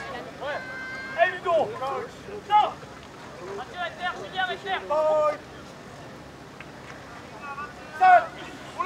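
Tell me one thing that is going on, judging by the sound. Young men shout calls to each other outdoors.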